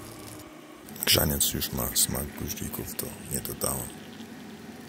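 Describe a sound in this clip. Hot drink pours into a ceramic mug.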